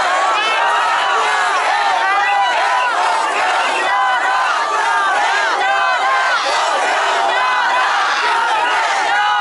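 A large crowd of men and women shouts and chants outdoors.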